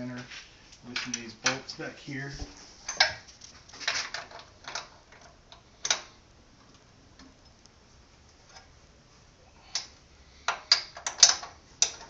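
A wrench clicks and scrapes against metal bolts.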